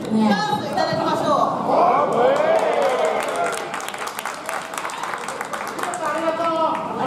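An audience claps rhythmically.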